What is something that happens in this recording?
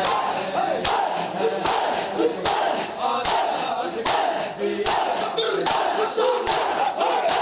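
Men beat their bare chests in a steady, rhythmic unison.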